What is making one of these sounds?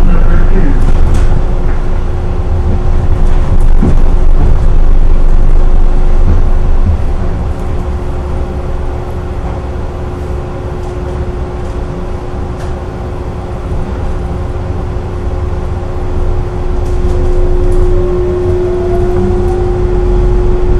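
An electric motor hums with a steady tone that rises in pitch near the end.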